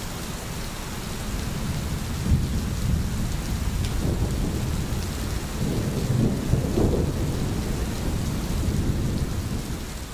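Steady rain patters all around outdoors.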